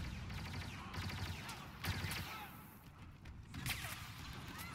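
Blaster shots crack in quick bursts.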